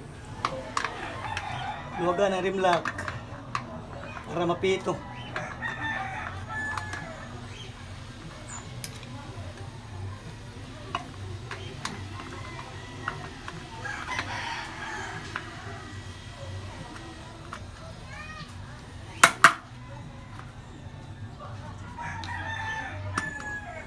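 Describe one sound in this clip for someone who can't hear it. Metal tire levers scrape and click against a wheel rim.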